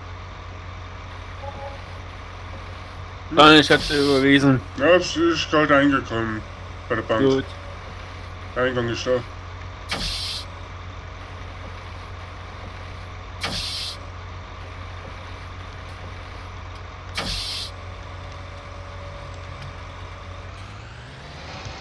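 A heavy machine engine hums steadily.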